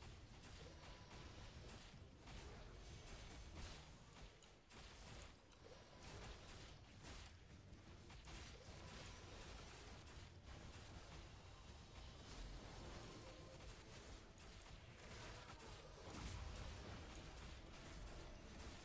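Hits land with sharp thuds.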